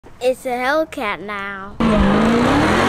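A young girl speaks close up with animation.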